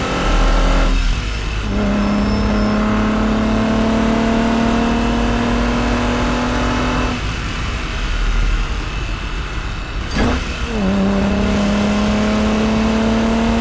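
A car engine hums steadily while driving, rising in pitch as it speeds up.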